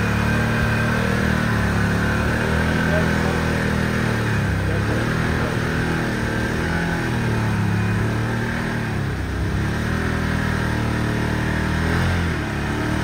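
An off-road vehicle's engine rumbles and revs as it drives.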